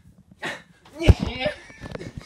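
A person lands on the floor with a thud.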